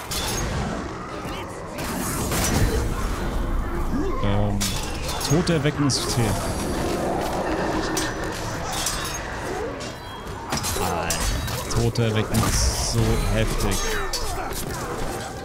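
Men grunt and shout in combat.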